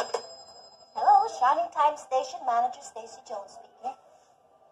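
A woman talks into a phone with animation.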